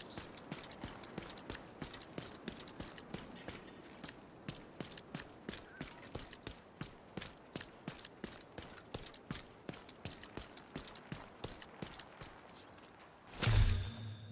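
Quick footsteps run steadily on hard pavement.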